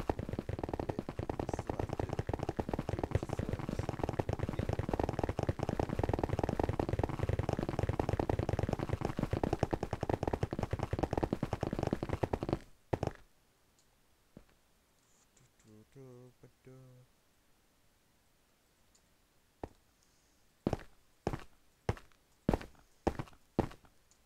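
A pickaxe chips rapidly at ice blocks in a fast, steady rhythm.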